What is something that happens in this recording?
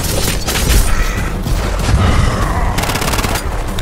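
Explosions boom and crackle close by.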